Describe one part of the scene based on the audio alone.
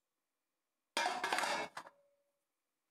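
Metal scraps clatter and rattle as they are dropped into a metal tray.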